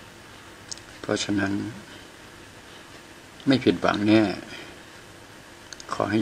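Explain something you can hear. An older man speaks casually in short bursts close by.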